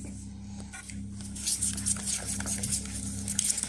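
A wire whisk scrapes and swishes against a bowl.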